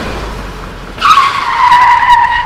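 Tyres screech loudly as a car skids on a dirt road.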